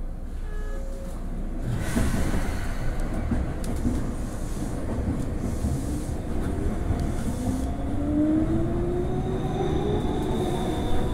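A train rumbles and rattles along the tracks, heard from inside its cab.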